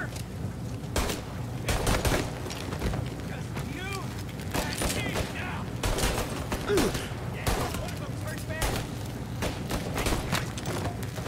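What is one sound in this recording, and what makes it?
Pistol shots ring out sharply, one after another.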